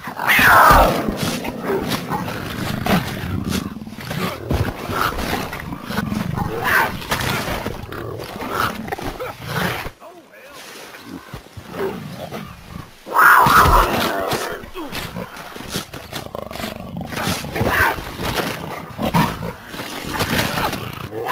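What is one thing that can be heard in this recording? Tigers snarl and growl fiercely up close.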